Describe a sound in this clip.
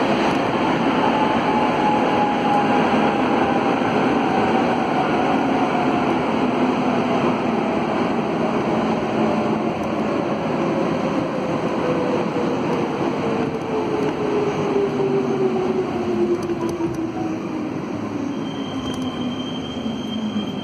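A subway train's motor whines, slowly falling in pitch as the train slows down.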